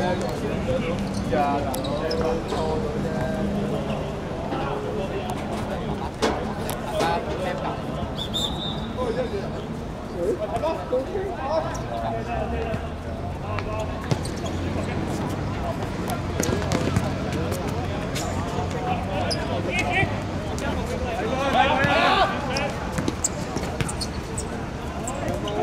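Men shout and call out to each other across an open-air court.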